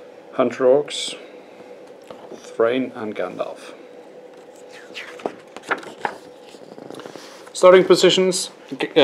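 A man speaks calmly and close by, in short bursts.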